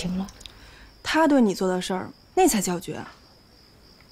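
Another young woman answers with feeling, her voice rising.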